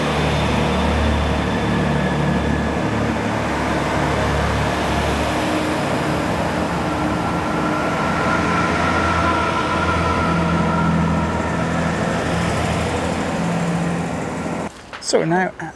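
A train rumbles and clatters past close by.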